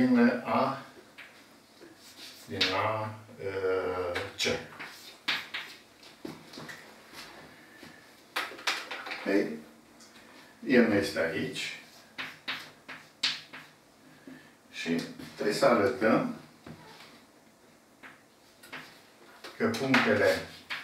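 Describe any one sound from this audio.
An elderly man speaks calmly, as if explaining a lesson.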